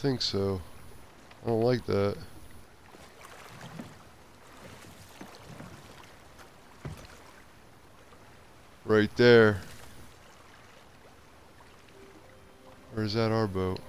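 Ocean waves surge and roll.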